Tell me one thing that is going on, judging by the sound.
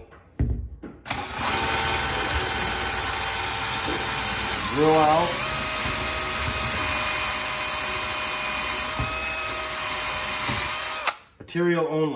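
A power drill whirs steadily as it bores into wood.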